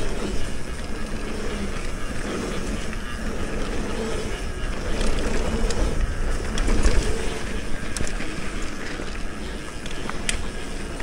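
Bicycle tyres crunch and roll over a dirt trail.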